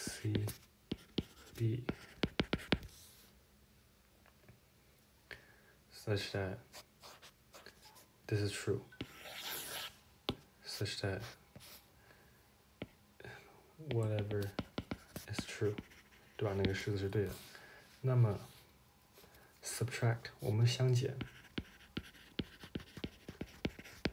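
A stylus taps and scratches on a tablet's glass.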